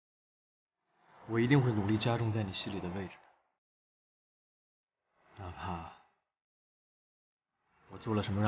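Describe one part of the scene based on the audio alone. A young man speaks earnestly and close.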